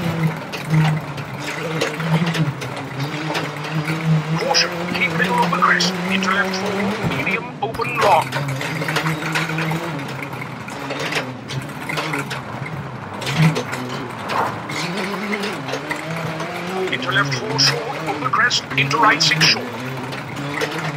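A rally car engine drones steadily and revs up and down through gear changes.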